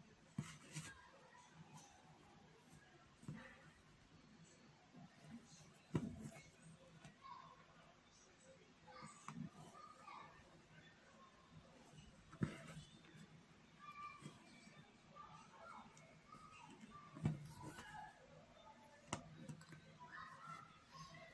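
Fabric rustles and knocks lightly as hands handle it close by.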